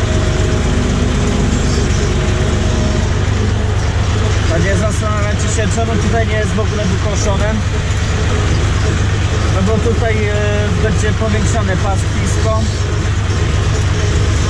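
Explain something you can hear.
A loose tractor cab rattles as it drives over bumpy ground.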